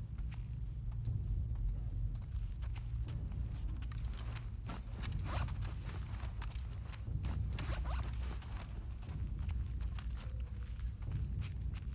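Footsteps shuffle slowly across a hard floor.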